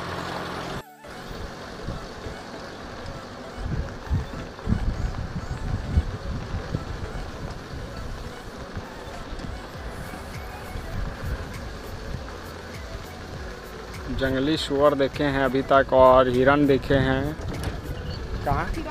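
A vehicle rumbles and bumps along a dirt track.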